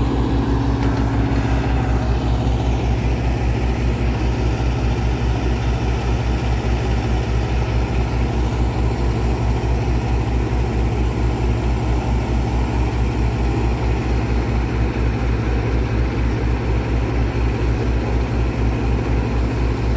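A diesel engine runs loudly nearby with a steady, rapid throb.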